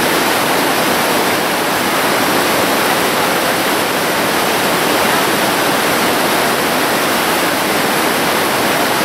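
River rapids roar and rush steadily.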